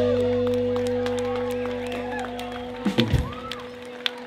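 An electric guitar rings out a sustained chord that fades away.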